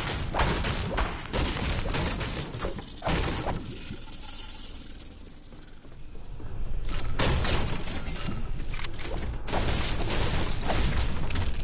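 A pickaxe strikes a wall in a video game.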